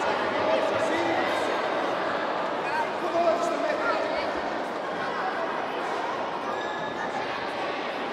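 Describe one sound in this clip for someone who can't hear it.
Spectators chatter and cheer.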